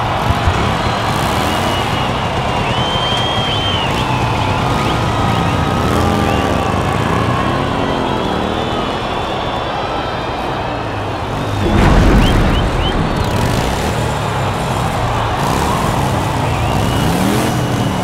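A band plays music loudly through speakers.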